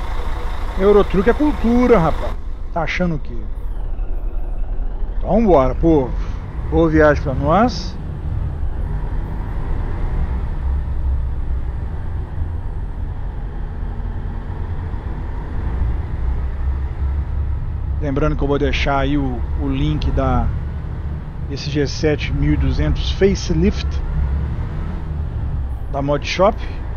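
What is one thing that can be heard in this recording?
A diesel coach engine rumbles as the bus pulls away slowly.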